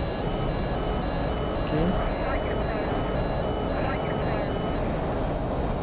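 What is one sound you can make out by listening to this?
A cockpit warning tone beeps in a rapid repeating pattern.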